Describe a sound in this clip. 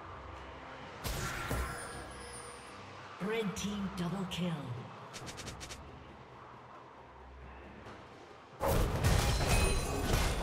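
Video game spell effects whoosh and crackle during a fight.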